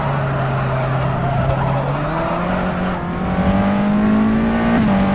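A racing car engine drones loudly, its pitch climbing steadily as it speeds up.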